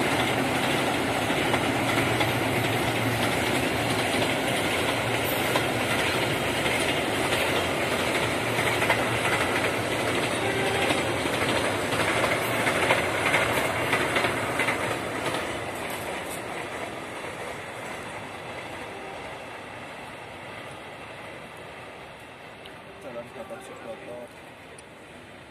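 A long freight train rumbles and clatters past in the open, then slowly fades into the distance.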